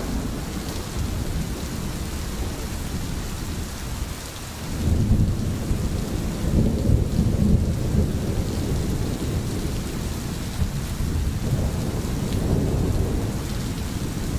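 A stream gurgles and trickles steadily over stones.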